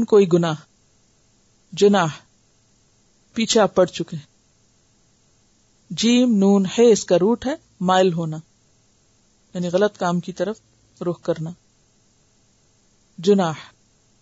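A woman speaks calmly into a close microphone, in short phrases with pauses.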